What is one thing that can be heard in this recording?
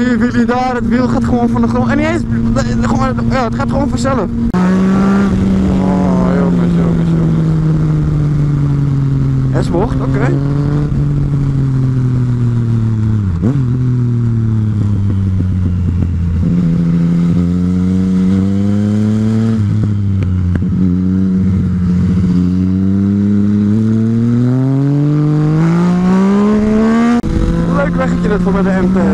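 A motorcycle engine drones, rising and falling in pitch as the rider accelerates and shifts gears.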